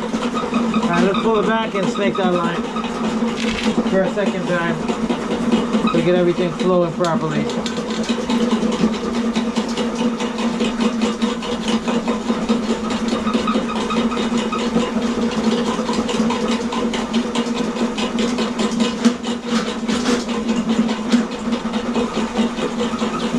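A drain cleaning machine hums steadily.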